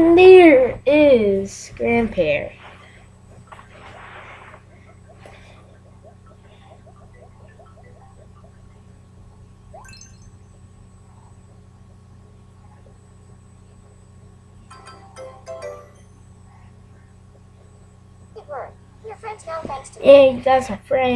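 A small handheld game speaker plays chirpy, warbling electronic sounds.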